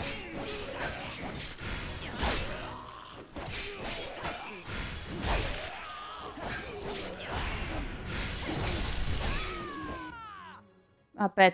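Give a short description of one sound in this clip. Game combat sounds clash and whoosh loudly.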